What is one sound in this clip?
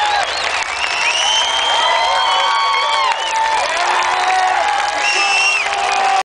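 A large crowd cheers and sings loudly.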